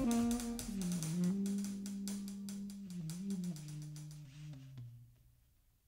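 Drumsticks tap lightly on cymbals and drums.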